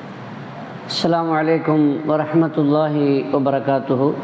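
An elderly man speaks calmly and steadily into a close microphone.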